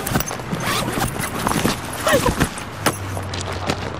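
A bag rustles on gravel.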